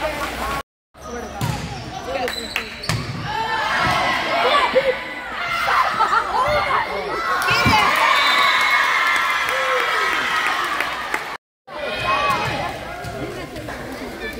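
A volleyball is struck by hand in an echoing gym.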